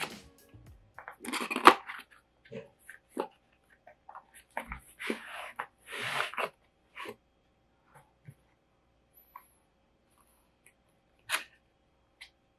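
Cardboard rustles and scrapes as a box is opened by hand.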